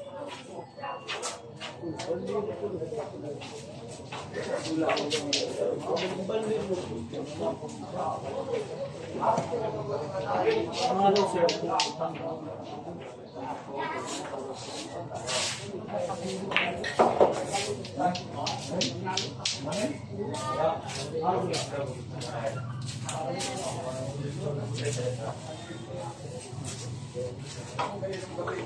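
Men and women chatter nearby in a lively group.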